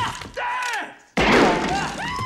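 A revolver fires a loud shot indoors.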